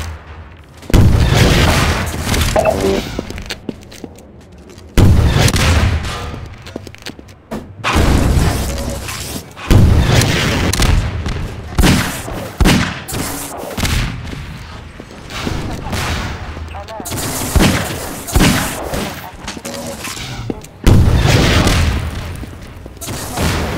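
A rocket launcher fires with a whoosh.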